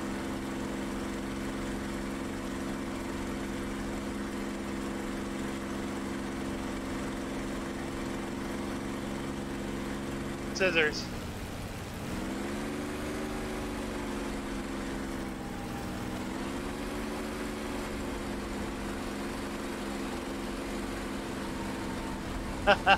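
A propeller aircraft engine drones steadily, dropping and rising in pitch.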